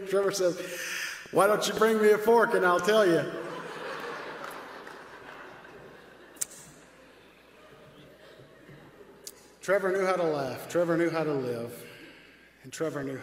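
A man speaks slowly and solemnly into a microphone in a large echoing hall.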